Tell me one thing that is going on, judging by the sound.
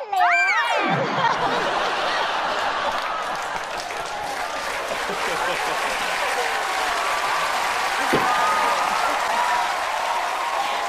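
A large audience laughs and cheers loudly.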